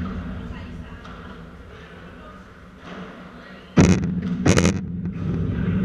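Shoes squeak and scuff on the court.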